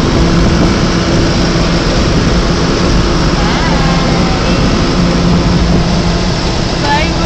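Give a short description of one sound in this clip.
A vehicle engine hums loudly and steadily.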